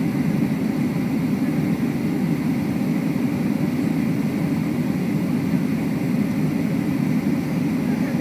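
Jet engines roar steadily inside an airplane cabin.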